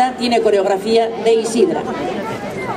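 A woman speaks through a loudspeaker outdoors.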